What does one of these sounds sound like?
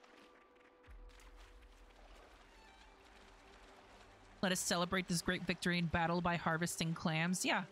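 Water splashes softly as a swimmer paddles through it.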